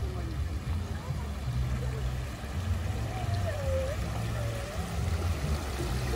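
Water splashes gently in a small fountain.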